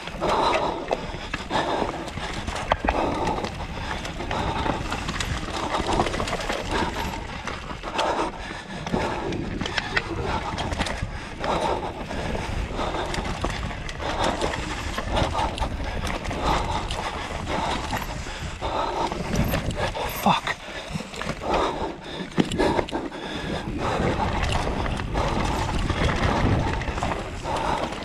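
Bike tyres rumble and crunch over a dirt trail.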